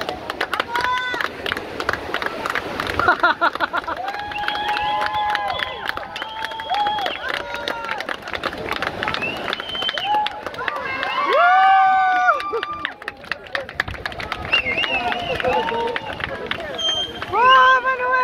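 A crowd of young men and women cheer and shout outdoors.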